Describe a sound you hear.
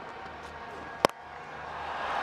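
A cricket bat cracks sharply against a ball.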